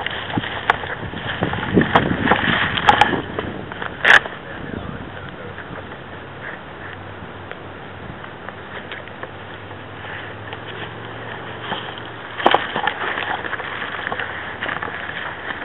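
Leaves and twigs rustle and crackle as someone pushes through undergrowth.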